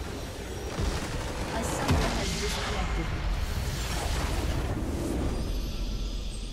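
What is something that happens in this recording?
Game spell effects crash and whoosh loudly.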